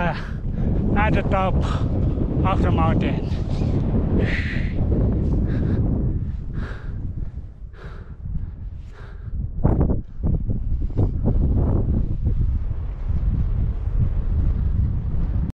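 Wind gusts and rumbles against a microphone outdoors.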